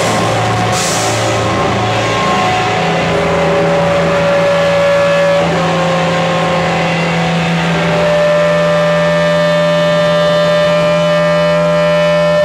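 A band plays loud, distorted electric guitars and bass.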